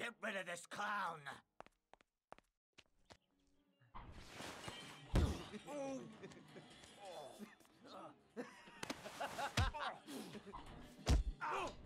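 A man grunts and shouts while fighting.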